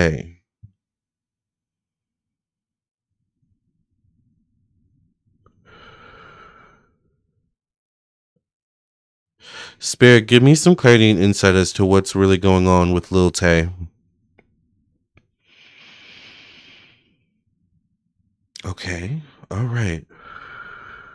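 A man speaks calmly and close into a microphone, in short bursts with long pauses.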